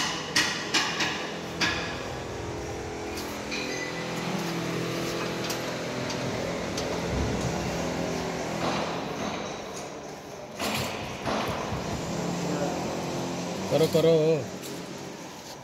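A large machine hums steadily nearby.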